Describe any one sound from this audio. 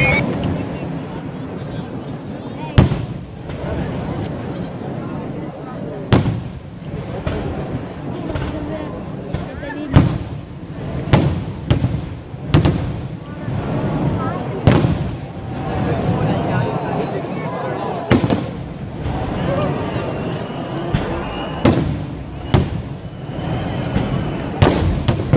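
Fireworks crackle and fizzle steadily.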